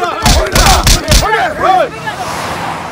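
A crowd of men shouts and scuffles loudly.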